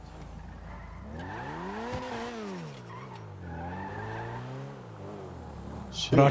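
A car engine revs and hums.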